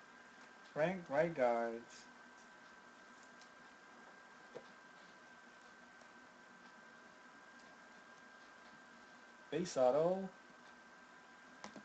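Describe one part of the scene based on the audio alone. Trading cards rustle and tap as hands handle them.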